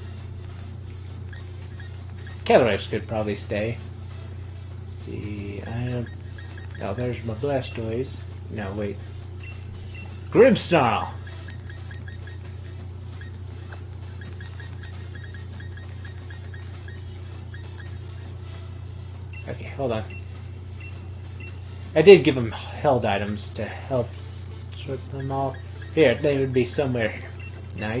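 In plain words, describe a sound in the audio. Soft electronic menu blips sound as a cursor moves.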